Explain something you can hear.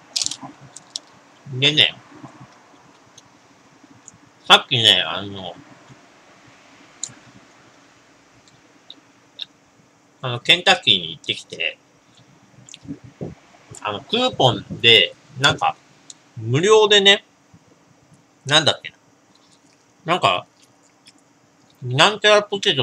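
Someone bites and chews crispy fried food close by.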